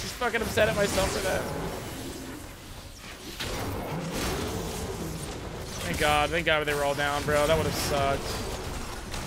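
Game sound effects of magic blasts and clashing weapons play.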